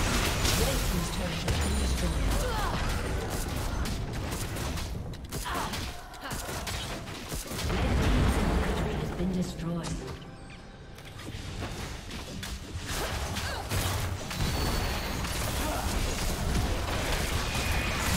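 Game spells and attacks crackle and boom in a busy fight.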